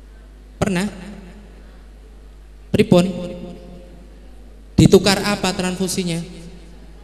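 A man speaks with animation into a microphone, heard through loudspeakers in a large echoing room.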